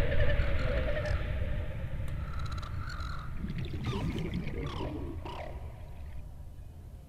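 A huge sea creature growls deeply underwater.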